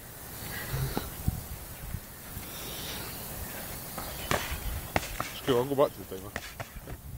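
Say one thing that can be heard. Boxing gloves thud against each other in sharp blows.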